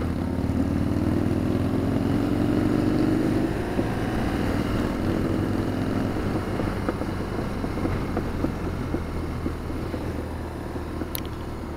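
A motorcycle engine hums steadily up close, rising in pitch as it speeds up.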